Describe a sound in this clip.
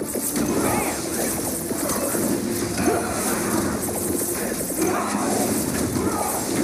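Quick hit sounds chime again and again.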